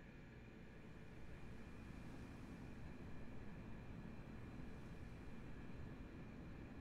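Wind blows steadily across open sand.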